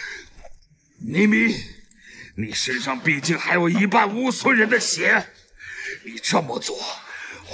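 A man speaks in a low, menacing voice close by.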